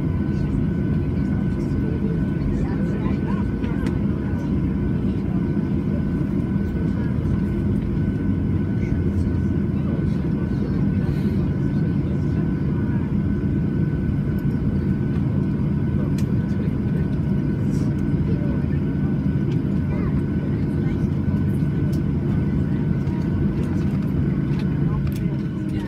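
A high steady whine rings out from a jet engine.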